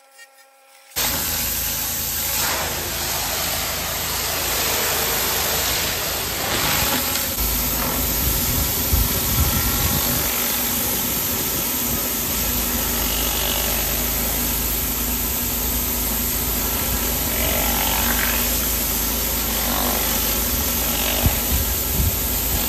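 A pressure washer engine roars steadily.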